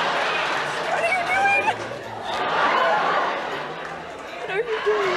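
A young woman squeals and laughs close by.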